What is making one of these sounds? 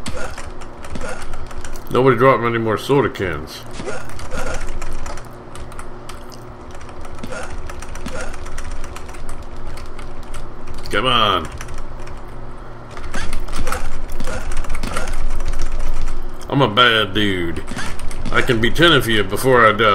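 Punches and kicks thud in an arcade game.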